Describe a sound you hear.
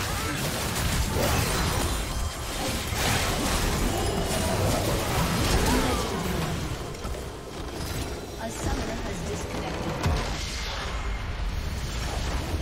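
Video game battle effects whoosh, crackle and burst rapidly.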